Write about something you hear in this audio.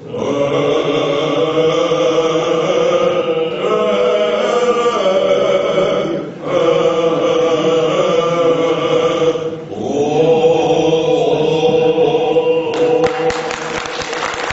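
An elderly man speaks steadily through a microphone in an echoing hall.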